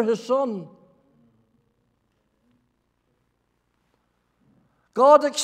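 An elderly man speaks slowly, heard through a microphone in a large room.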